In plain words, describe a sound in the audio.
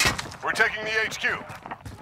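A rifle fires sharp shots.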